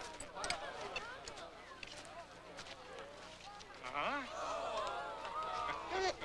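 A crowd of men and women cheers and shouts outdoors.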